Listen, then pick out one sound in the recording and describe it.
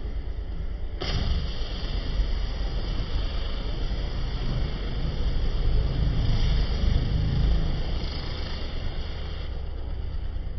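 Water hisses from a hose spraying onto a car.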